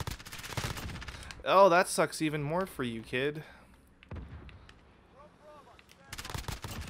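Rapid gunshots crack in quick bursts.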